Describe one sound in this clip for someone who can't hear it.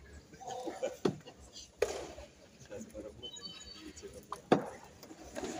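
Taekwondo kicks thud on padded chest protectors.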